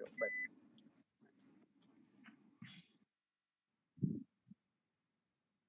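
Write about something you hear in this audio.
A middle-aged man speaks calmly through a headset microphone on an online call.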